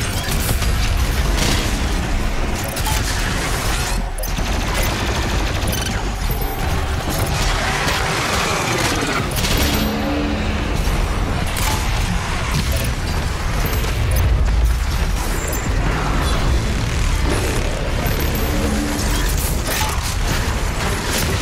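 Guns fire rapidly in loud, booming bursts.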